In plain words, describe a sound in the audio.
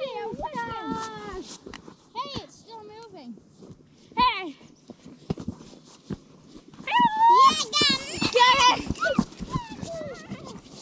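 A young child talks and squeals excitedly outdoors.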